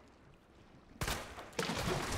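A gunshot bangs sharply.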